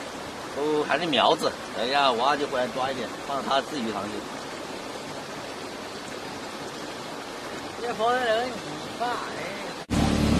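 A man talks casually outdoors, close by.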